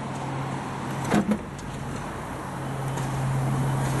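A car's tailgate clicks open.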